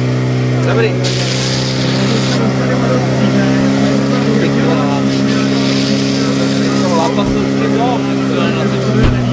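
Water jets hiss loudly from fire hoses.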